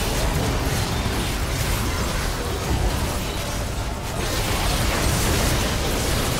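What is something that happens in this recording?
Game spell effects crackle and burst during a team fight.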